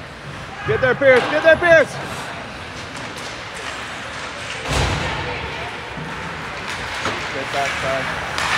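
Ice skates scrape across the ice in a large echoing rink.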